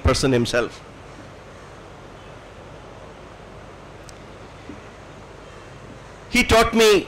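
An elderly man addresses an audience through a microphone and loudspeakers, pausing between phrases.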